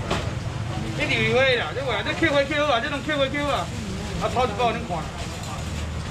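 A young man speaks animatedly close by.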